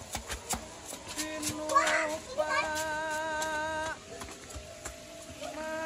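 A child's footsteps tap on stone steps.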